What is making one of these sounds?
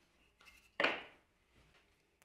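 A strip of wood knocks down onto a wooden board.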